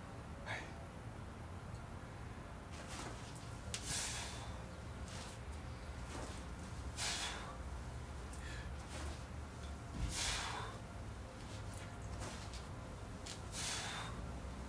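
A man breathes out hard in rhythmic bursts, up close.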